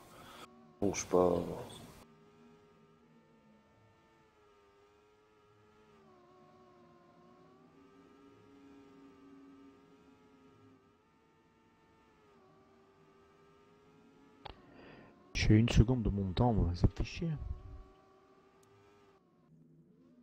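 A racing car engine whines steadily, rising and falling in pitch.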